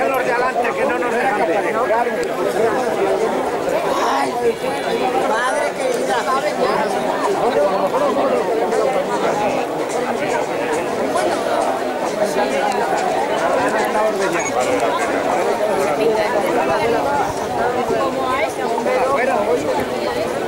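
A large crowd of people chatters and calls out outdoors.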